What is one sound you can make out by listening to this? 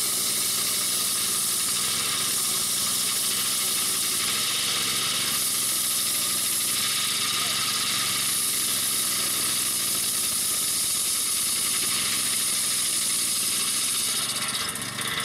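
A circular saw blade whines as it cuts through wood.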